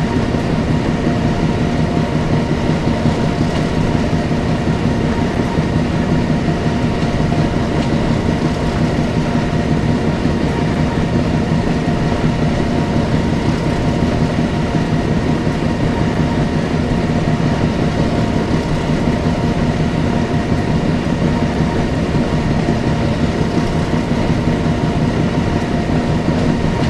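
A diesel locomotive engine rumbles and hums steadily.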